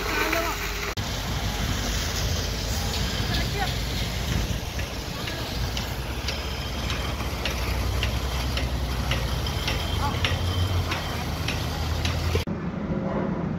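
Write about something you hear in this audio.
A concrete pump truck's diesel engine rumbles.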